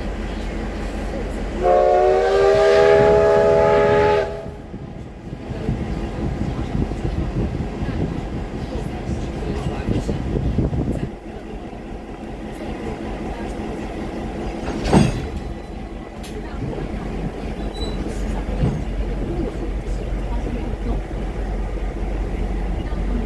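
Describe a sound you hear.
A train rumbles slowly along the tracks.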